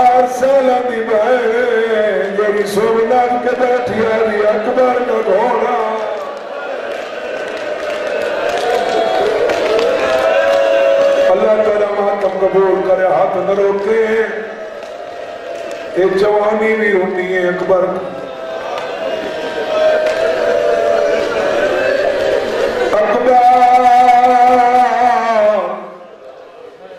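A man speaks with passion into a microphone over loudspeakers, in a large echoing hall.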